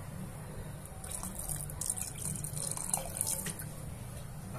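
Water pours into a pot of stew.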